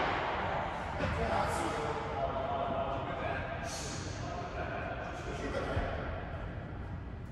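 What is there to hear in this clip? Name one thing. Men call out to each other during the rally.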